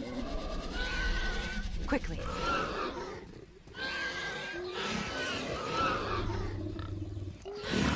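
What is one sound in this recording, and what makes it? A large beast groans and grunts close by.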